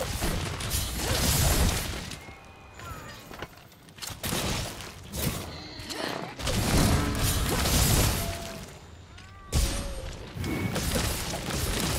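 A huge creature stomps and thrashes.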